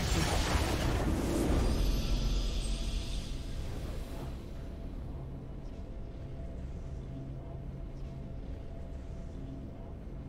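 A triumphant fanfare plays and rings on.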